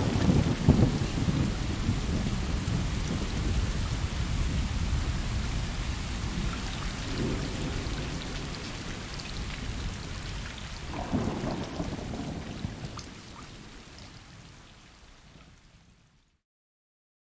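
Rain patters steadily outdoors and slowly fades away.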